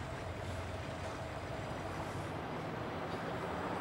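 A glass door swings open.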